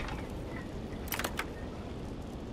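A lock clicks open.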